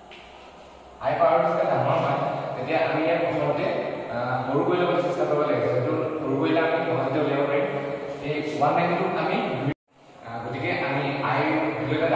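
A young man speaks clearly in a room, explaining in a teaching voice.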